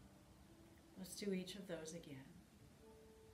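A woman speaks softly and calmly nearby.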